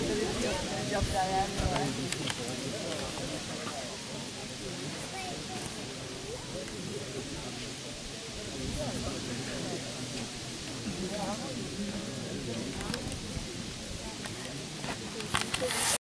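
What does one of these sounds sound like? Several young women chat and murmur close by outdoors.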